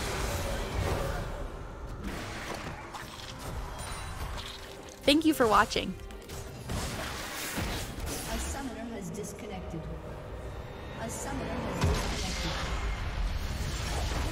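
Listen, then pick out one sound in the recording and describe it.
Game combat effects whoosh and clash.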